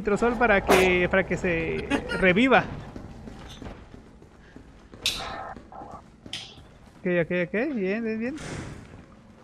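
Young men talk and laugh with animation into microphones.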